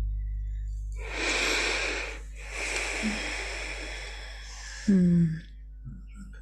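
A woman speaks quietly into a microphone, close by.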